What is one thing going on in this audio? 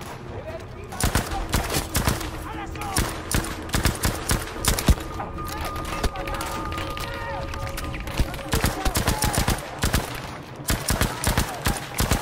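A rifle fires rapid shots, with loud cracks echoing outdoors.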